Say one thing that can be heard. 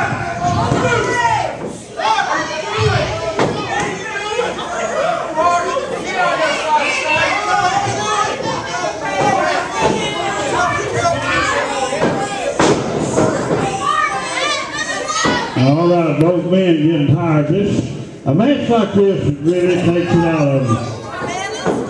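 A crowd of men and women talk and shout nearby in a large echoing room.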